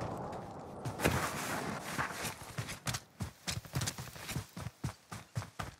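Footsteps thud quickly across grass and ground.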